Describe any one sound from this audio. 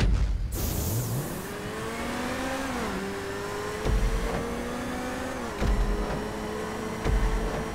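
A car engine revs and roars, rising and dropping in pitch as the gears shift.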